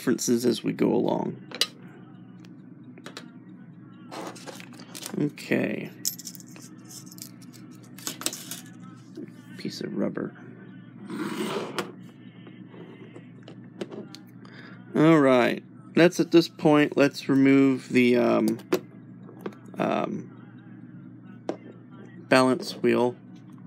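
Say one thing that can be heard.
Small metal clock parts click and clink as they are handled.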